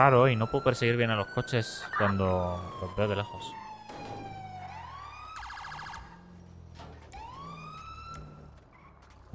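A police siren wails and yelps, rising and falling.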